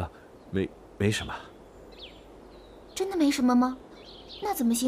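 A young woman answers softly, close by.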